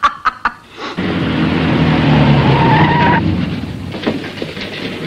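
A car engine hums as the car approaches.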